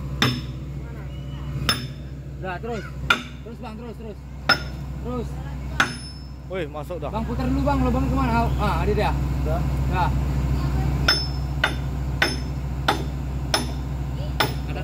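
An excavator engine idles nearby with a low rumble.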